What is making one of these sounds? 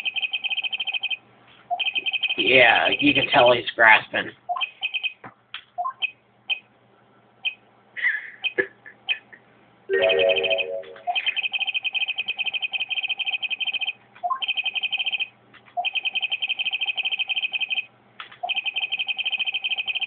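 Quick, high electronic blips chatter in rapid bursts as game dialogue text scrolls.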